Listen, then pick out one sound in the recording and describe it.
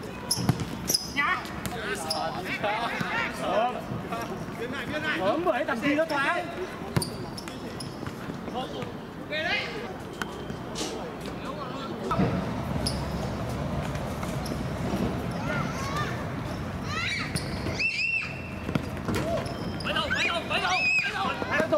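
Men shout and call out across an open outdoor court.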